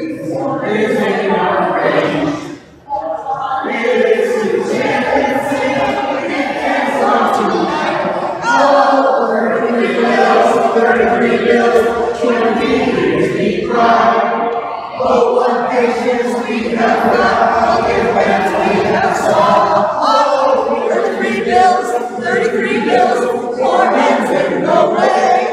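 A group of men and women sing together in a large echoing hall.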